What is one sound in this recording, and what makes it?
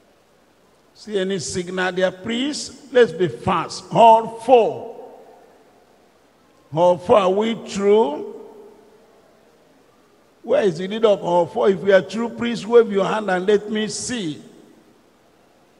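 An elderly man preaches forcefully into a microphone, in short bursts with pauses.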